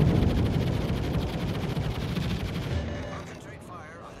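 Heavy naval guns boom and rumble, then fade away.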